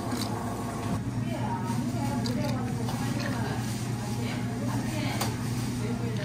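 Coffee pours into a glass of ice.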